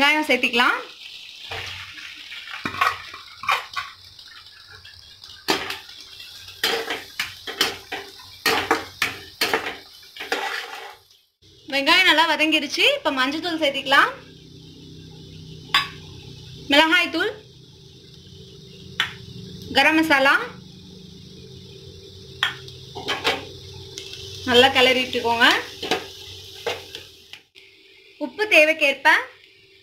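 Oil sizzles steadily in a hot pan.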